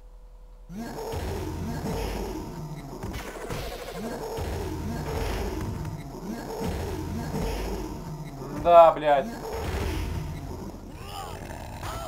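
Punches and kicks land with heavy thuds.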